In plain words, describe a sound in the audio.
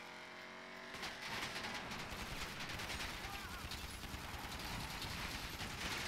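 A car crashes with a loud bang and scrapes along rough ground.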